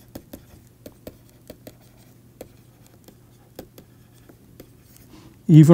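A pen taps and scratches on a writing tablet.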